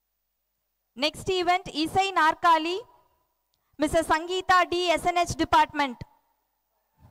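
A group of young women sings through loudspeakers outdoors.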